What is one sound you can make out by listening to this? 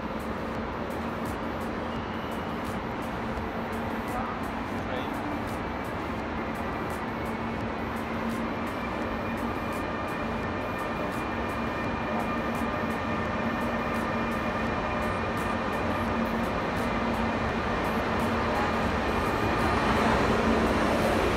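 A train approaches and rolls into a large echoing station, growing louder.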